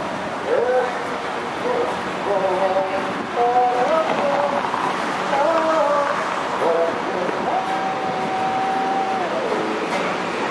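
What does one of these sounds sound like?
A woman talks close by.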